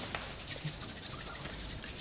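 A man rubs his hands together.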